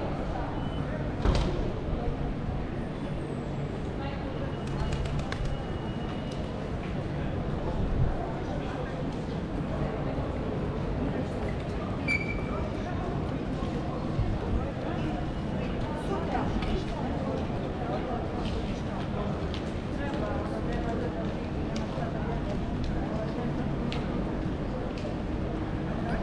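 A busy pedestrian street murmurs with distant chatter outdoors.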